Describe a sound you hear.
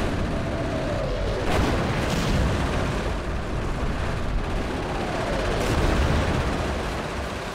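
Whistling shells fall with a descending whine.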